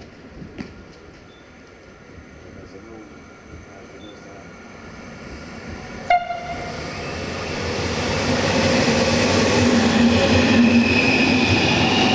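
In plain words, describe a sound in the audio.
An electric locomotive approaches and rolls past close by, growing louder.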